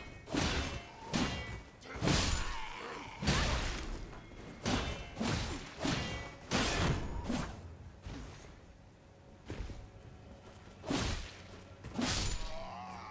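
Sword blows land with sharp metallic strikes.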